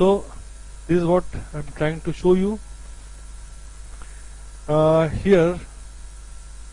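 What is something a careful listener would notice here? A middle-aged man speaks calmly through a microphone over an online call, in short bursts.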